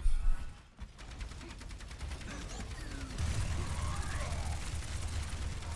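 A gun fires rapidly in bursts.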